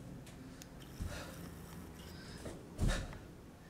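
Feet thud on a floor during lunges.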